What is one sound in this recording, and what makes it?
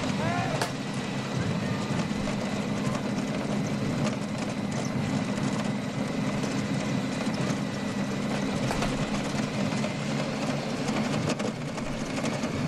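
A motorcycle engine hums steadily close behind.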